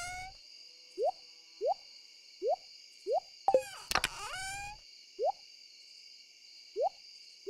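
Short rising game blips sound at a steady pace.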